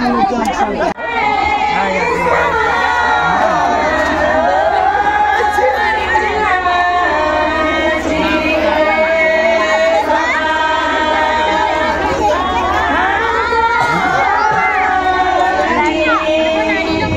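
A woman sings loudly into a microphone, heard through a loudspeaker.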